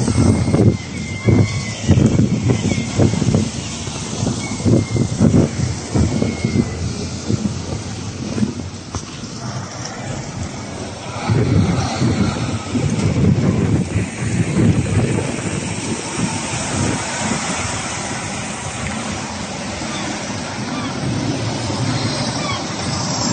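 A coach engine rumbles as it drives slowly past close by.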